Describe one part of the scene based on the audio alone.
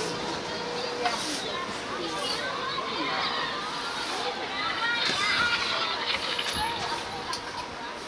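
Men talk nearby in casual voices.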